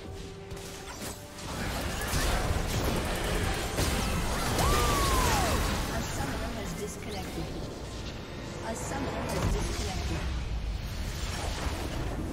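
Game spells and attacks clash with bursts of blasts and impacts.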